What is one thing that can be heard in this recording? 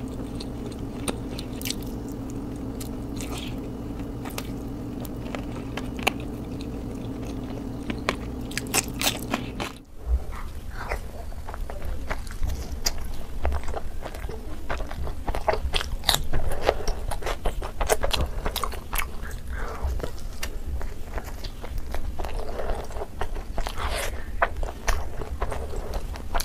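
A woman chews and smacks food noisily close to a microphone.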